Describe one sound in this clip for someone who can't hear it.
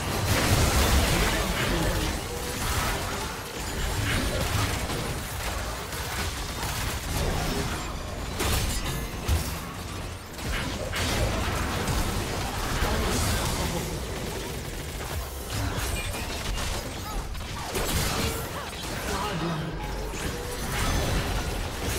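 Video game spell blasts and combat effects whoosh and crackle.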